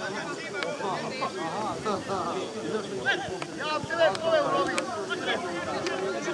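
Several men shout to each other across an open field outdoors.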